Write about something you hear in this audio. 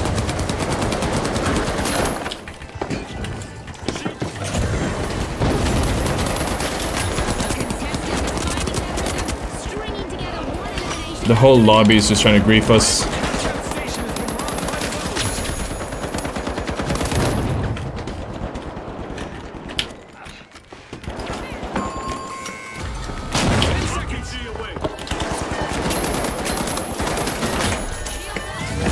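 Rapid gunfire rattles and crackles.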